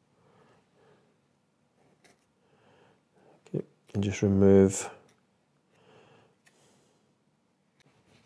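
A knife blade scrapes softly against icing.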